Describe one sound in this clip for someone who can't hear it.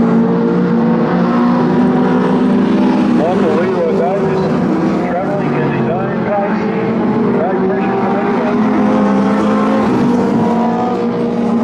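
Race car engines roar steadily, revving up and down.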